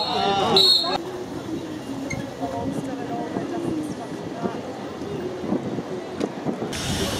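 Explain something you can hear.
Water laps against a harbour wall.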